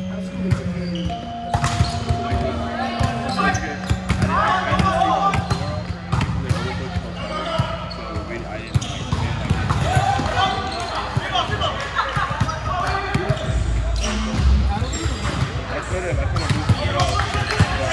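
A volleyball thuds as players hit it back and forth.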